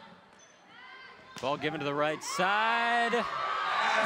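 A volleyball is struck with sharp slaps in an echoing gym.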